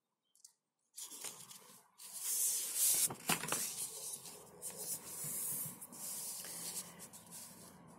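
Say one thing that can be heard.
Sheets of paper rustle and slide as they are handled.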